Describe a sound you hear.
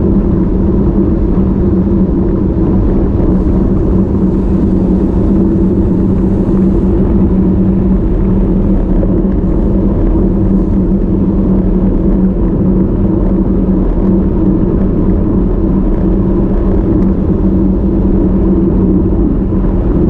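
Bicycle tyres hum steadily on smooth asphalt.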